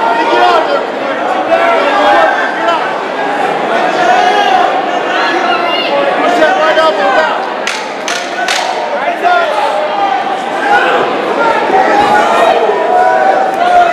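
A crowd of men and women shouts and cheers loudly nearby.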